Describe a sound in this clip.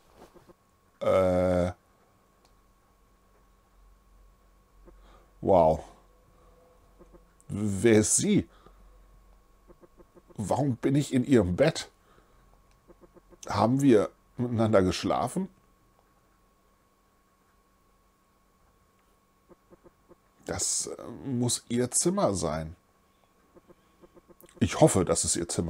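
A middle-aged man speaks with animation into a close microphone, reading out and reacting.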